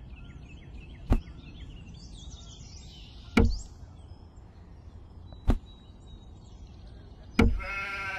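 A clay pot knocks down on a plastic toy trailer.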